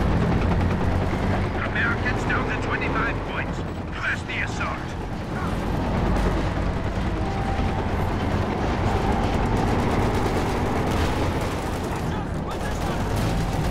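A heavy tank engine rumbles and tracks clank.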